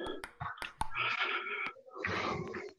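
A table tennis ball clicks against a table and paddle.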